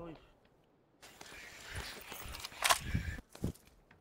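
A rifle is picked up with a short rattle.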